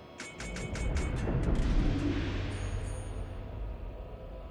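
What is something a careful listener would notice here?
Heavy naval guns fire with deep booms that rumble away.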